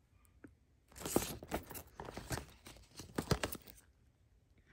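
Paper pages rustle and crinkle as a booklet is handled.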